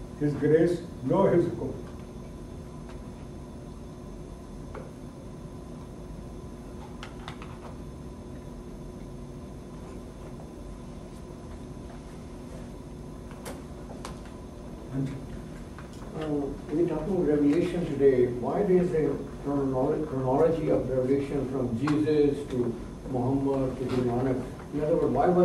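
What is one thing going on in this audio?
An elderly man speaks calmly into a close microphone.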